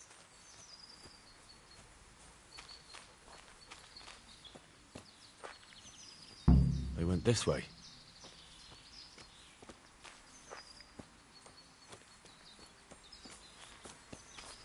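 Footsteps rustle through tall grass and undergrowth.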